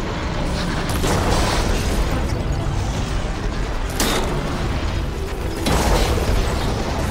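Energy blasts crackle and hiss.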